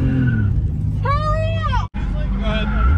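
Tyres screech as a car slides.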